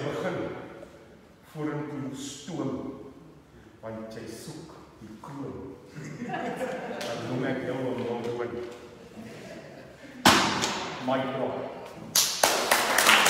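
A middle-aged man speaks with animation nearby in an echoing room.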